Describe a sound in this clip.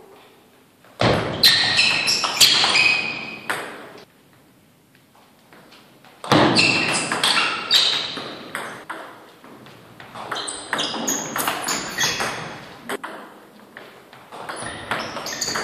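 A table tennis ball clicks back and forth between paddles and table in an echoing hall.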